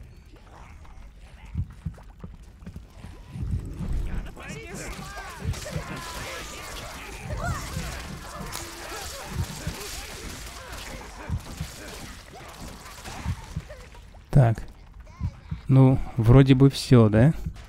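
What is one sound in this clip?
A sword slashes and thuds against small creatures.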